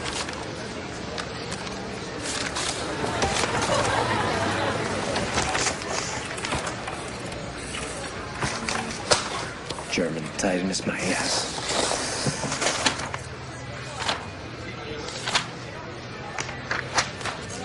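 Papers rustle and crackle as they are shuffled.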